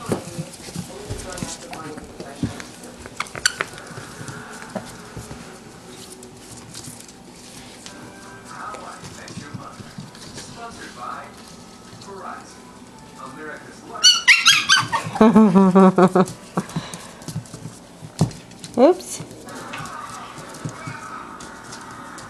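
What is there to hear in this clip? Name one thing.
Puppies' claws click and scrabble on a wooden floor.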